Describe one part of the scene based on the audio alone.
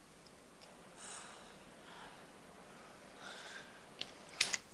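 A woman gasps and whimpers in fear.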